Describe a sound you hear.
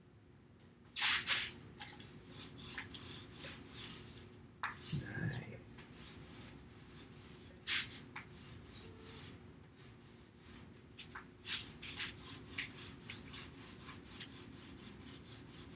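A pencil scratches quickly across paper, close by.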